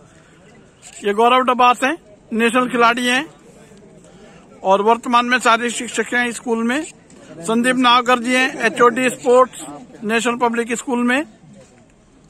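A man speaks loudly into a microphone, heard through a loudspeaker.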